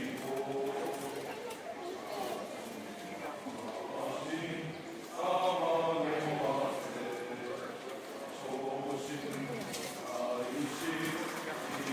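A crowd of people murmurs and chats nearby in an echoing hall.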